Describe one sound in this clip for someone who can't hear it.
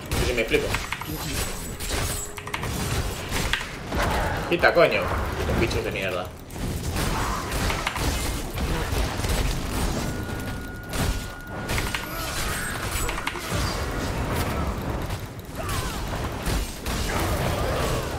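Game combat sounds clash and burst.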